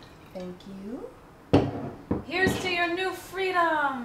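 Glasses clink together.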